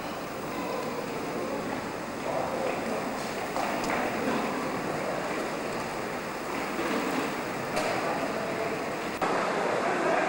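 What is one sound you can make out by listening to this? A model train rumbles across a metal bridge.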